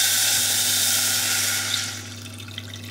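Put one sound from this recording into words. Water pours into a pot.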